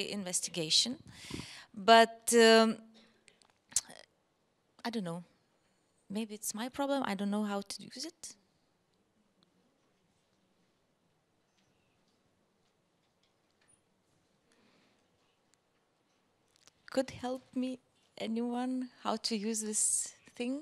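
A woman speaks calmly into a microphone over a loudspeaker.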